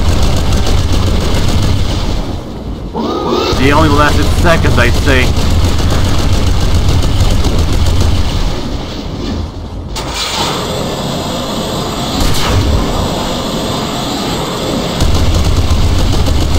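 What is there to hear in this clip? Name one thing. An energy weapon fires rapid crackling blasts.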